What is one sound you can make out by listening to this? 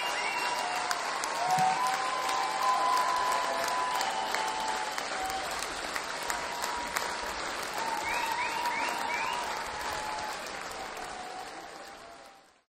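A large crowd cheers, claps and whistles loudly in a big echoing hall.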